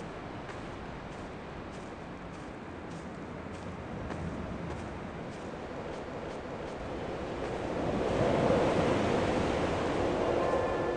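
Wind blows across open ground and grows stronger.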